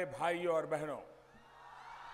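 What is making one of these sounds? A man speaks forcefully through a loudspeaker.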